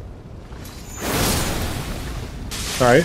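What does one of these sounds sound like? A sword swings through the air with a whoosh.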